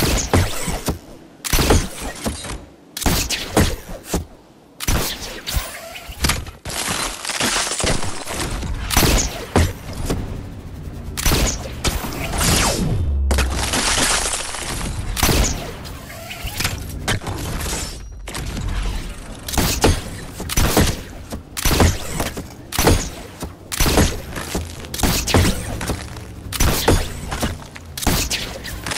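Building pieces snap into place in quick, clattering succession.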